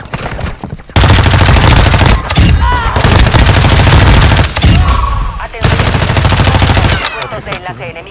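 Gunfire rattles in rapid, loud bursts.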